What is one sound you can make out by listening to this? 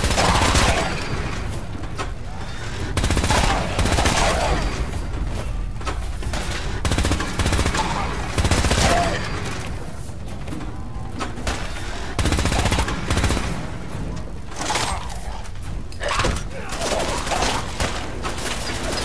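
A rifle fires rapid shots in short bursts.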